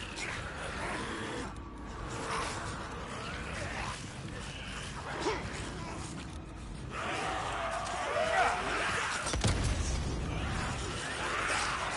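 A man's footsteps run fast over dry dirt.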